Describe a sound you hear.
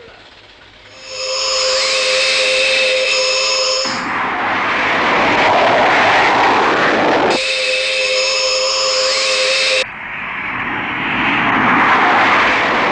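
A spaceship roars past with a loud humming whine.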